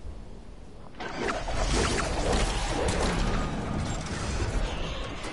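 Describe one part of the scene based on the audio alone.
Wind rushes loudly past a falling game character.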